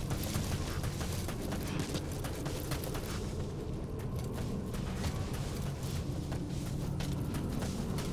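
Footsteps run quickly over grass.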